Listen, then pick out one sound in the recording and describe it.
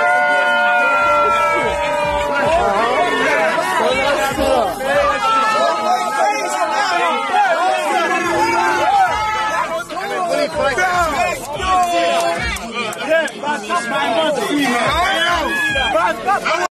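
A crowd of young men and women shout and cheer excitedly close by.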